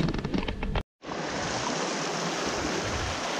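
A river rushes and splashes over stones.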